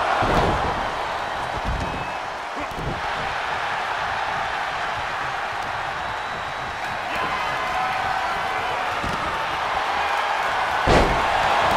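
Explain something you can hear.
Heavy bodies thud onto a wrestling mat now and then.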